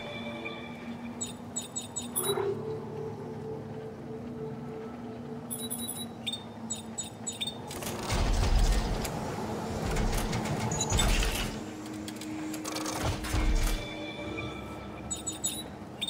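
Short electronic beeps and clicks chirp from a menu.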